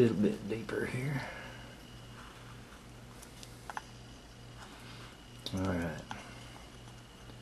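A small knife scrapes and shaves soft wood close by.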